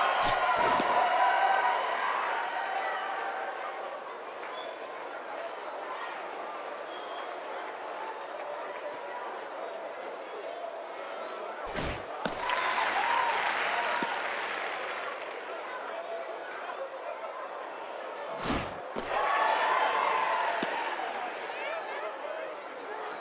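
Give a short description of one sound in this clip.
A crowd murmurs and cheers steadily in a large stadium.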